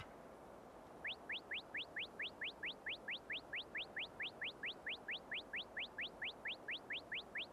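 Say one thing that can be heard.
A game's counter beeps rapidly with quick rising chirps.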